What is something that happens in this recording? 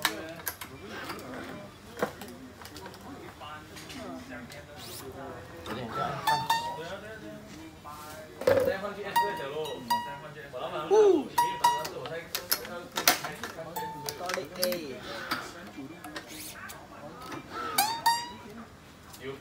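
Racket strings snap and twang as a hand pulls them tight.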